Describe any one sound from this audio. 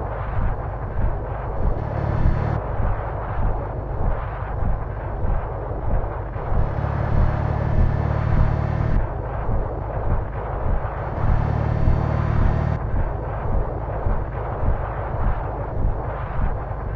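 A bus engine hums steadily at cruising speed.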